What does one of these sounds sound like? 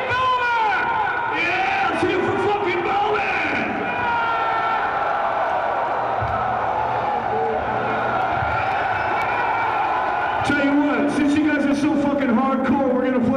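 A man shouts into a microphone over loudspeakers.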